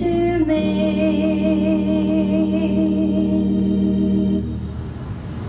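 A young woman sings a long held note through a microphone.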